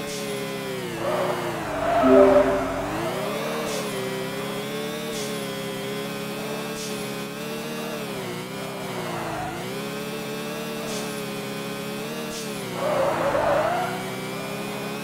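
Tyres screech as a racing car skids.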